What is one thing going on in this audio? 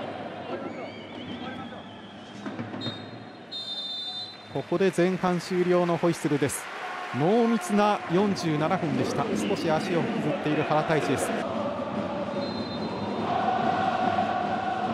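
A stadium crowd murmurs in a large open space.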